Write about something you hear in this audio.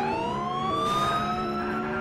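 A car crashes into another car with a thud.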